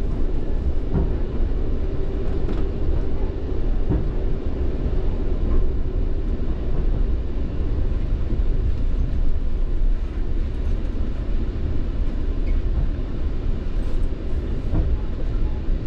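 Train wheels clatter and knock on the rails.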